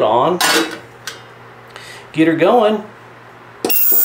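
A metal lid clinks onto a steel tank.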